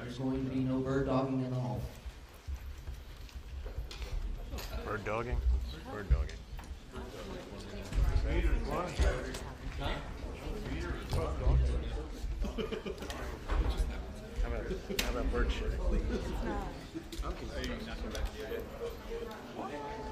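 A crowd of men and women chatters nearby in a large room.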